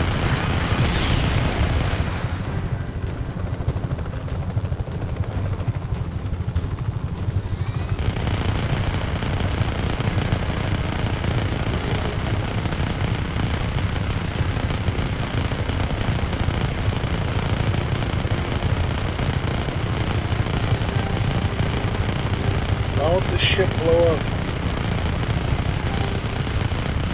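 A helicopter's rotor thumps with a deep, steady drone.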